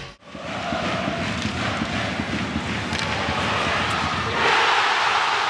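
A large crowd chants and cheers in an echoing arena.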